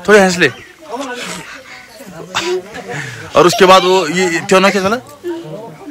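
Young children chatter and laugh close by.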